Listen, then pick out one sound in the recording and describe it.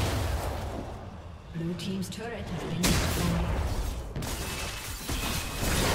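Magic blasts whoosh and crackle in a video game fight.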